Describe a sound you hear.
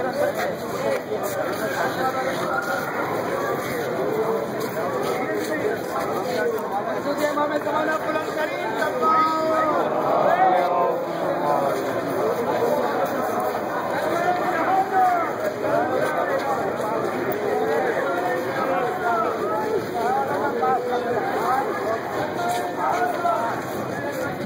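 A large crowd of men chants and calls out together outdoors.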